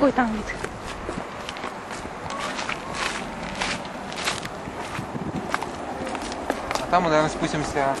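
Footsteps walk on pavement and down wooden steps.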